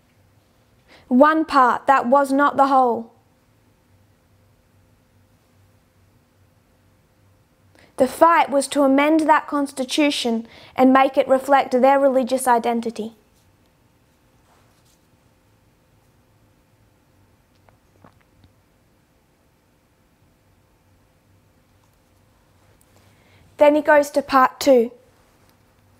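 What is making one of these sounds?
A woman speaks calmly and clearly into a close microphone, in short bursts with pauses.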